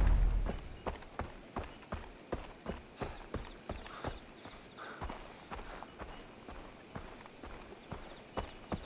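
Footsteps crunch steadily on a dirt path.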